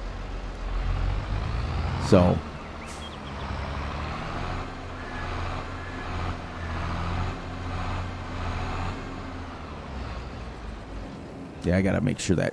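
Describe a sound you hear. A tractor engine rumbles steadily as the tractor drives.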